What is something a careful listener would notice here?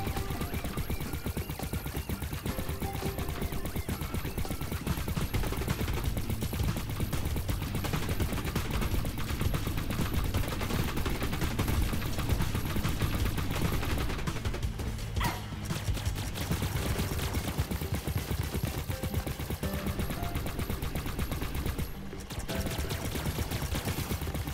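Rapid video game gunfire blasts steadily.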